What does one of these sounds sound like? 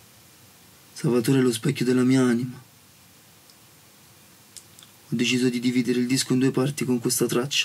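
A young man sings close by.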